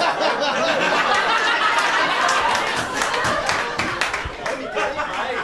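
An audience laughs and murmurs.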